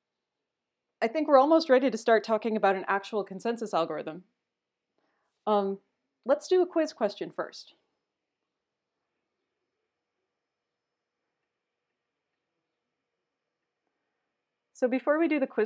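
A young woman speaks calmly into a close microphone, pausing now and then.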